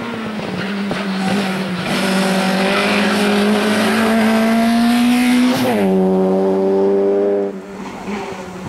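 A rally car engine roars at high revs and shifts gears as it races past.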